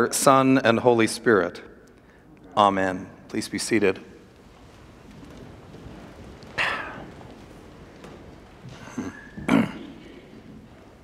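An elderly man speaks haltingly and with emotion through a microphone.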